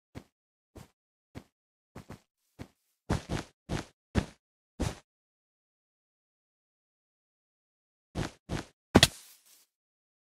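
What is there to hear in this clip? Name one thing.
Blocks are placed with soft clicking thuds.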